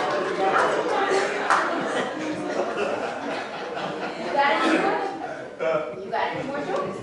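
A young woman speaks into a microphone over a loudspeaker, in an echoing hall.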